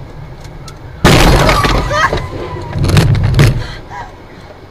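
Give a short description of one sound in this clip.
A car hits a person with a loud crash.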